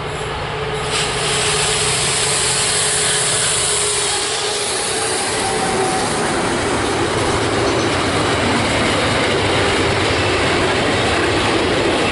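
Freight wagons clatter loudly past on the rails.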